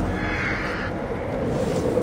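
Wind rushes loudly past a falling body.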